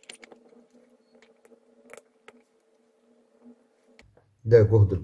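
Metal clips click as they snap onto a battery's ends.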